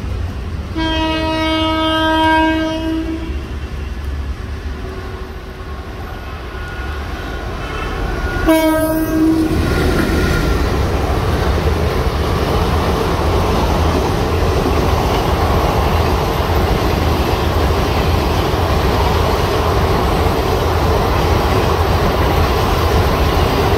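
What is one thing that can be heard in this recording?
A passenger train rumbles and clatters past on the rails.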